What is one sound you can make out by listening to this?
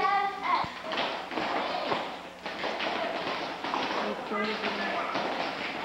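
Shoes tap and shuffle on a wooden floor.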